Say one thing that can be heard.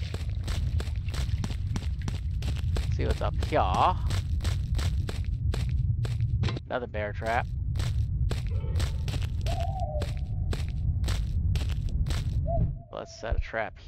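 Footsteps crunch steadily over grass and earth.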